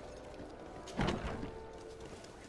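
A wooden door bangs open.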